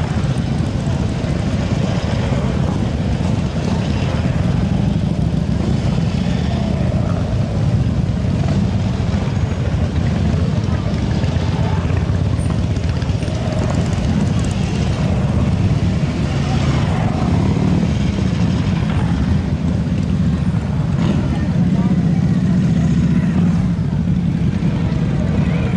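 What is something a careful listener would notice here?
Motorcycle engines rumble loudly as motorcycles ride slowly past, close by.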